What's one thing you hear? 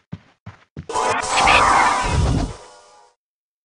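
A fireball bursts with a loud roaring whoosh.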